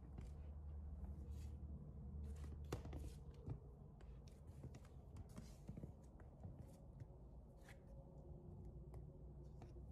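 High heels click and tap on a wooden floor.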